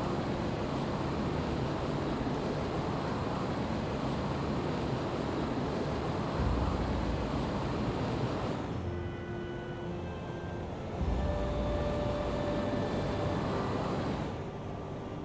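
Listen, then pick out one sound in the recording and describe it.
Jet thrusters roar steadily, dropping away for a few seconds at a time.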